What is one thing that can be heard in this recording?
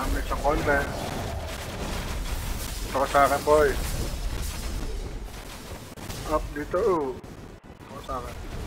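Game battle effects crackle and boom.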